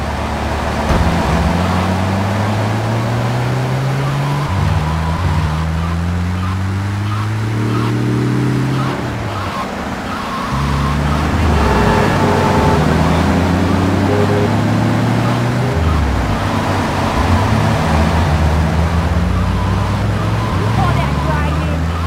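A car engine revs and climbs through its gears, rising and dropping in pitch.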